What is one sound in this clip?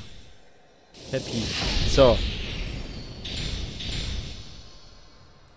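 A shimmering magical chime swells and fades.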